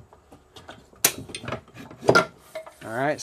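A folding metal stepladder clanks.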